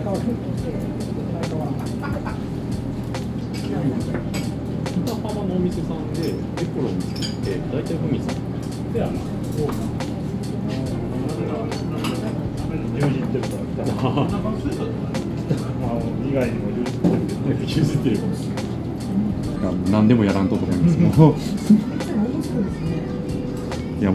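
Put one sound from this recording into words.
Dishes clink now and then.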